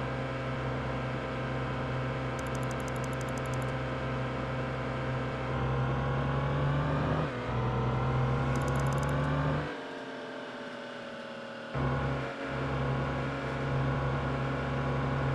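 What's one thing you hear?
A heavy truck engine drones steadily, its pitch rising as it speeds up and dropping off briefly while the gears change.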